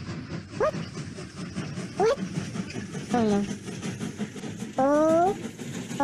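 A small steam train chugs along the tracks.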